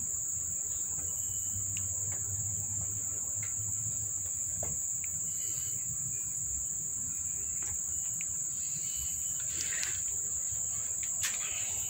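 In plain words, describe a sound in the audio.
A cat licks a kitten's fur with soft wet sounds.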